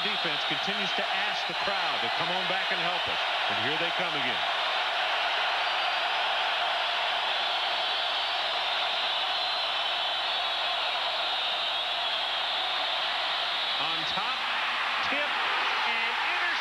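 A large crowd roars and cheers throughout a stadium.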